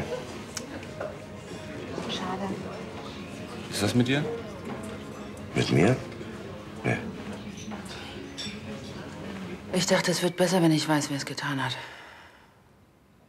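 A man speaks quietly and earnestly, close by.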